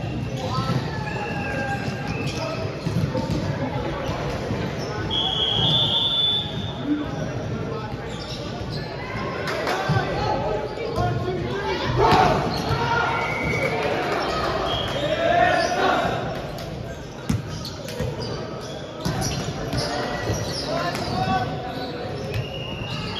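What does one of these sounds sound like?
Many people chatter and call out in a large echoing hall.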